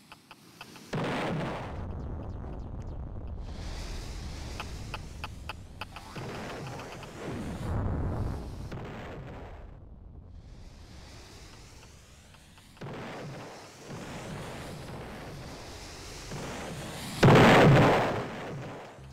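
Rocket blasts boom loudly.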